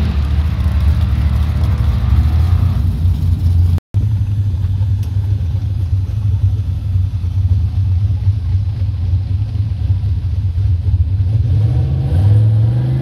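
A race car engine idles with a deep rumble.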